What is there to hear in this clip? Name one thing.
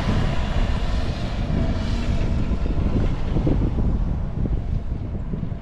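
An off-road vehicle's engine rumbles as it drives away and fades.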